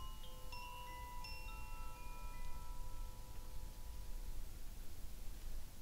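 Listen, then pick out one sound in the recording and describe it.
Metal chimes ring out with clear, bright tones and slowly fade away.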